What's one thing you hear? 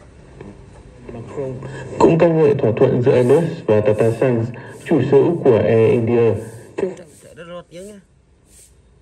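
A voice sings through a small, tinny radio speaker.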